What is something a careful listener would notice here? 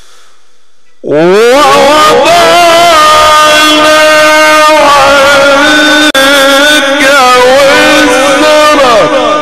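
A young man chants in a long, melodic, sustained voice through a microphone and loudspeakers.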